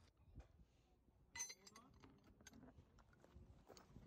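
Items rustle and knock as they are moved about in a car boot.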